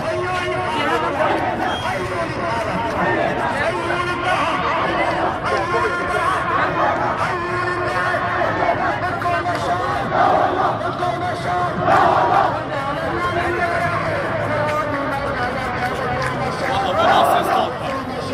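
A large crowd of men chants and sings together outdoors.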